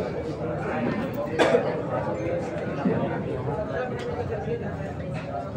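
A crowd of people chatter and murmur indoors.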